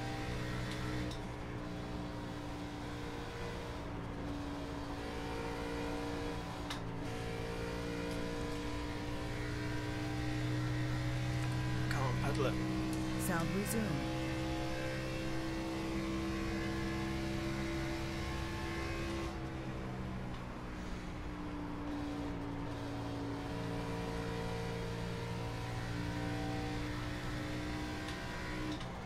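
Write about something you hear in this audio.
A racing car engine drones steadily at high speed, rising and falling slightly in pitch.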